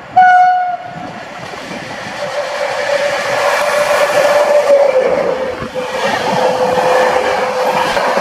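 An electric train approaches and rushes past close by with a loud rumble.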